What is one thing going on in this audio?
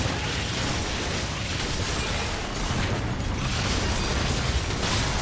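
Magic spells burst and crackle in a busy video game battle.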